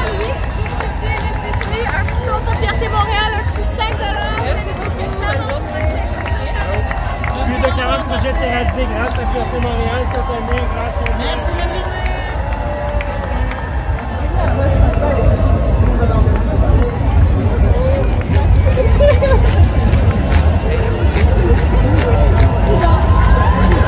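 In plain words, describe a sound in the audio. A crowd chatters and cheers outdoors.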